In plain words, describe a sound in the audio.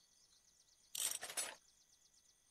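A short, sharp game sound effect plays as an item is crafted.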